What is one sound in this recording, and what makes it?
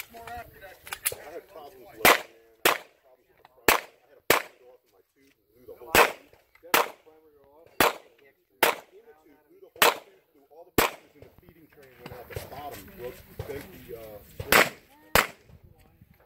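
A pistol fires sharp shots outdoors, one at a time.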